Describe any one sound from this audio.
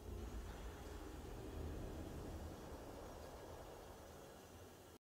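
Triumphant game victory music swells and slowly fades.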